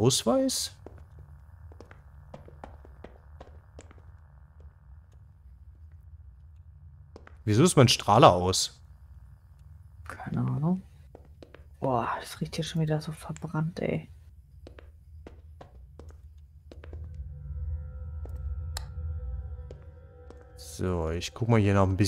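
Footsteps tap on a hard tiled floor.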